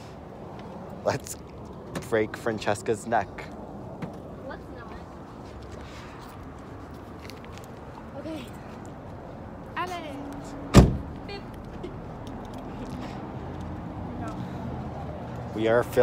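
A teenage boy laughs and talks with excitement, close by.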